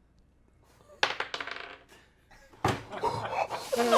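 Several young men laugh loudly together.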